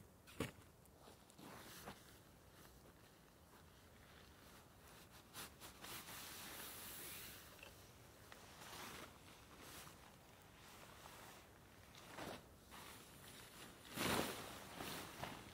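Footsteps crunch softly on a forest floor.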